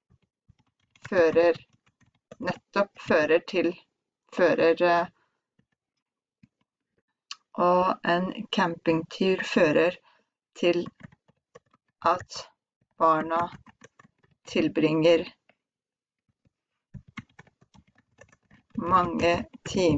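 A young woman speaks calmly into a headset microphone, dictating slowly with pauses.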